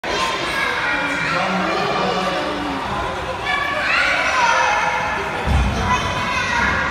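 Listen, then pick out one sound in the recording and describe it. A swimmer splashes steadily through the water in a large echoing hall.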